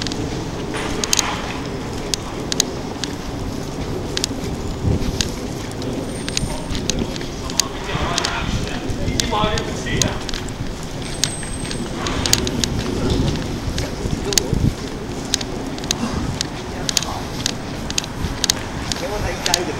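Outdoors, a faint city hum drones on.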